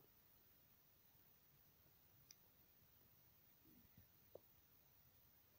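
A knife softly scrapes as it peels skin from an eggplant.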